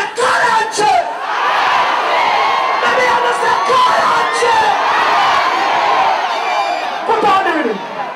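A large crowd shouts back in answer and cheers.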